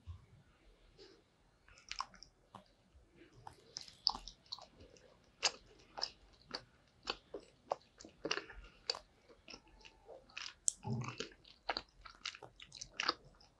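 A young woman chews soft gummy candy close to the microphone with wet smacking sounds.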